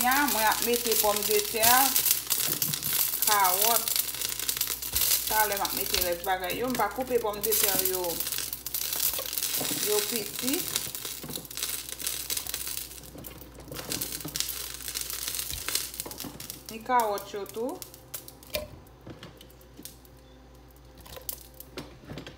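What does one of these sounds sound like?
Chunks of vegetables drop into a metal pot with soft thuds.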